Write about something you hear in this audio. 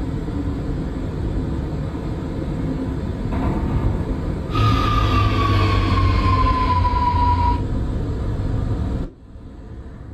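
A subway train rumbles along the rails, its motors whining.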